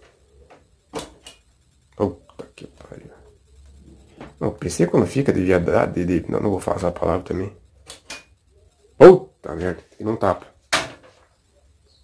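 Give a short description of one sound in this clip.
Hard plastic clicks and knocks as a computer case and its cables are handled close by.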